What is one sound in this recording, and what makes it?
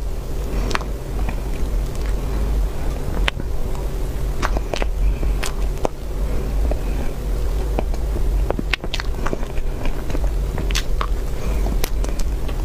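A young woman chews soft cake with wet, sticky mouth sounds close to a microphone.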